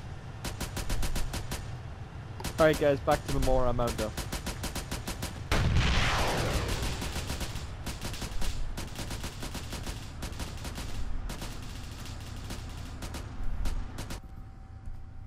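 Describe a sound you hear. A rifle fires rapid bursts of shots nearby.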